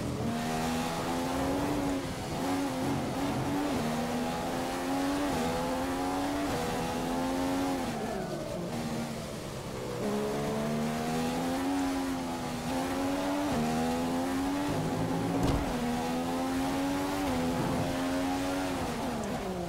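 A racing car engine screams, rising in pitch as it speeds up and dropping as it shifts and brakes.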